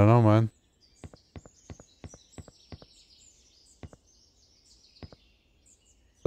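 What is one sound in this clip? Footsteps tap lightly and steadily.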